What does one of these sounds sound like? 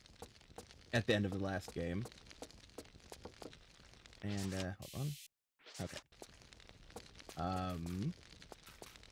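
A man talks with animation close to a microphone, in short bursts.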